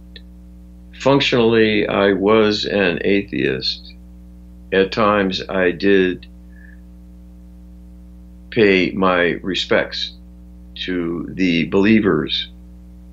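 An elderly man speaks calmly over an online call, in short bursts.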